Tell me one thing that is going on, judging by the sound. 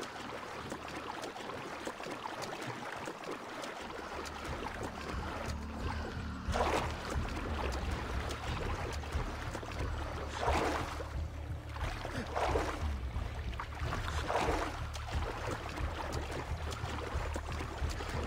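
Water splashes in bursts as a swimmer strokes through it.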